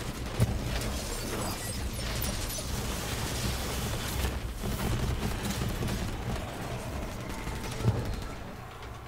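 A weapon fires a rapid stream of shots.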